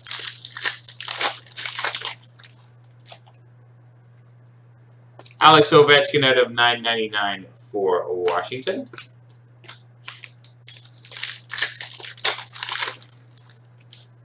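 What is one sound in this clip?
A plastic wrapper crinkles and rustles as hands tear it open.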